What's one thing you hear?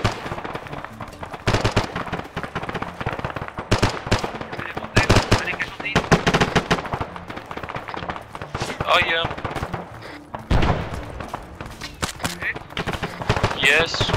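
Footsteps crunch on dry, dusty ground.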